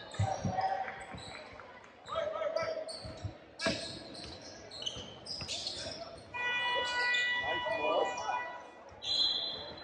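Sneakers squeak sharply on a hardwood court in a large echoing gym.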